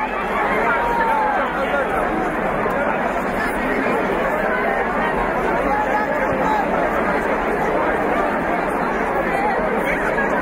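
A large outdoor crowd chatters and murmurs loudly.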